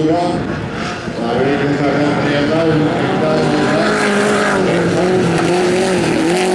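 A small car's engine revs hard and roars up and down as the car races along.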